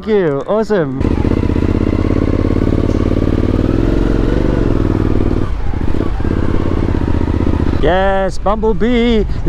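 A motorcycle engine hums steadily as the motorcycle rides along.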